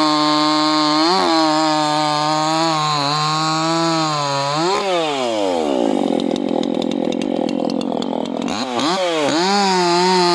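A chainsaw engine runs loudly, revving up and down.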